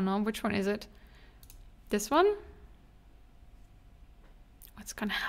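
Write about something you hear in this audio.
A young woman speaks calmly and closely into a microphone, in short phrases.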